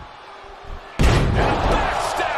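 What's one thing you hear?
A heavy body slams hard onto a wrestling ring.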